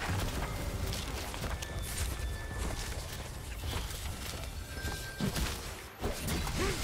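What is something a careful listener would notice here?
Magic spells and attacks crackle and boom in a game battle.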